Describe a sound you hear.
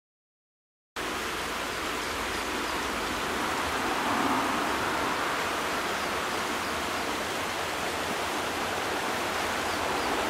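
A river flows and ripples steadily outdoors.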